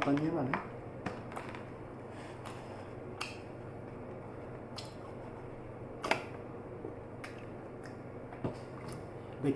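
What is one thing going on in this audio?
A plastic container clicks and crackles in hands.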